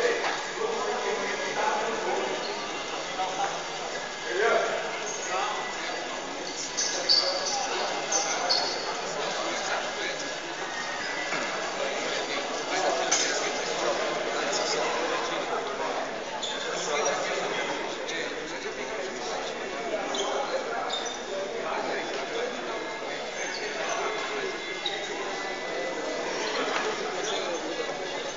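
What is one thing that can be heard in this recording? Players shout to each other across a large echoing hall.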